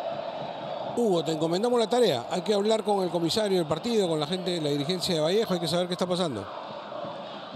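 A stadium crowd sings together loudly.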